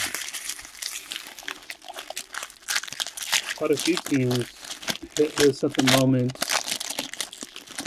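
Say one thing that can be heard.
Plastic card wrappers crinkle and tear as hands open them.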